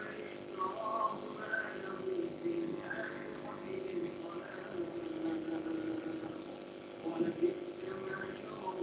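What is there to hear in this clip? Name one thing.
A man speaks calmly into a computer microphone, as in an online call.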